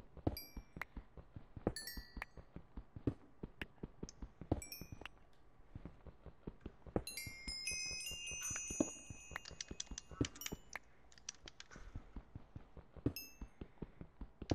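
Broken stone blocks pop into pickups with short, high chimes.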